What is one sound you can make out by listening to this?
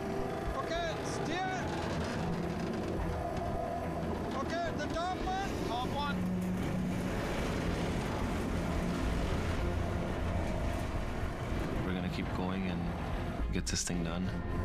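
A heavy tow truck engine rumbles steadily.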